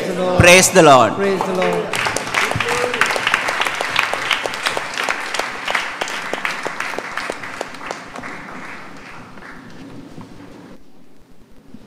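A large crowd claps and cheers.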